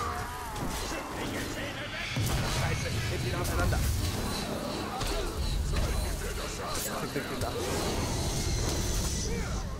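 A fiery blast bursts with a roar.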